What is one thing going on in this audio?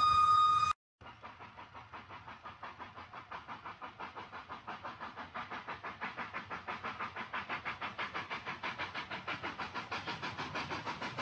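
A model train rattles along its track with a steady rhythmic clicking that grows louder.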